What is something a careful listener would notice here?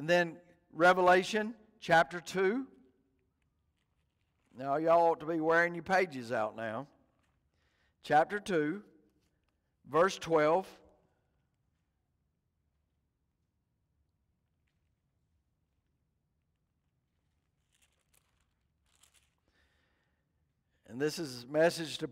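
A middle-aged man speaks calmly through a microphone, with long pauses.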